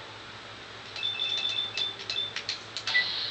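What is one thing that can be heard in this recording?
Short electronic beeps and clicks sound in quick succession.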